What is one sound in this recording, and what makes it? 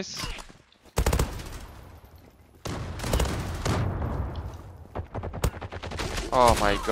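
Rifles fire in loud rapid bursts.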